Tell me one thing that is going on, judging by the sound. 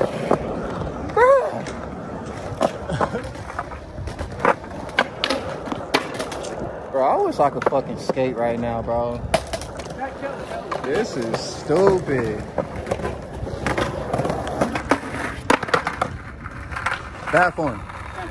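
Skateboard wheels roll and clack on concrete.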